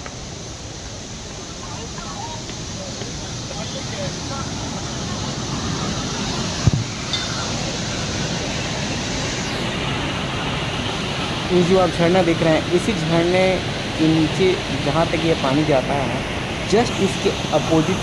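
Water rushes and roars steadily down a rocky gorge, outdoors.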